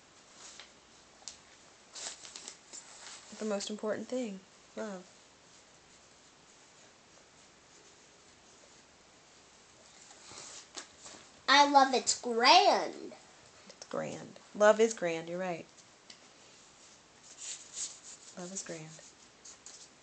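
Paper rustles in a child's hands.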